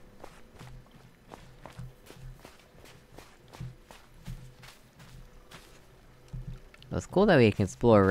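Footsteps crunch softly on sand at a steady walking pace.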